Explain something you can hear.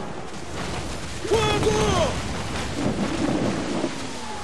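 Rough sea waves crash and roar in a storm.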